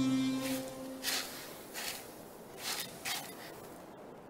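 A brush sweeps across sand in short strokes.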